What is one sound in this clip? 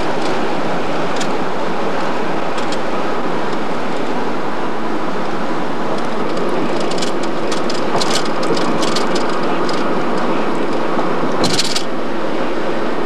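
Road noise and wind rush steadily from inside a moving car.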